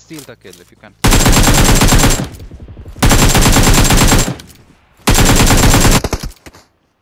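A rifle fires rapid automatic bursts.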